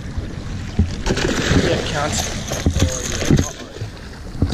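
A large fish thrashes and splashes at the water's surface.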